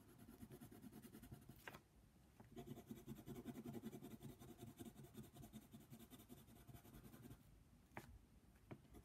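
A pencil scratches rapidly back and forth on paper, close up.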